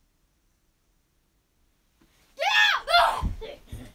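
Bedding rustles as a boy jumps up from a bed.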